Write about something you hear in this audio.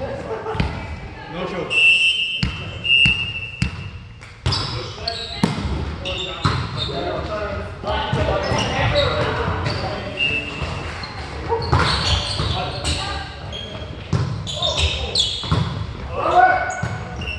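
A volleyball thumps off players' hands and arms in a large echoing hall.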